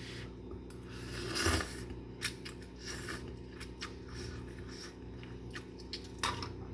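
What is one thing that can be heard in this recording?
A woman slurps noodles loudly, close by.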